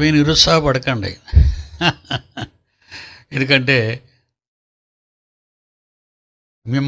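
An elderly man speaks calmly into a close microphone.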